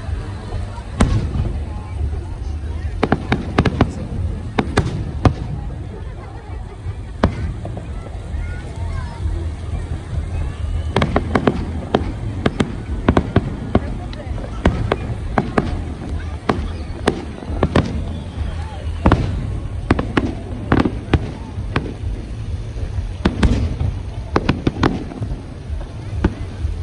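Fireworks bang and crackle in the distance, one burst after another.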